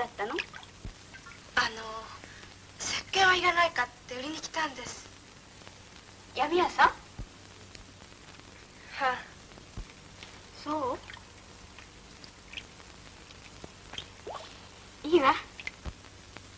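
Young women talk and giggle in high voices.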